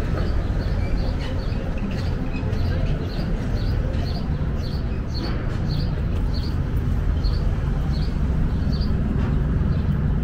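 Footsteps tap on the pavement at an even pace.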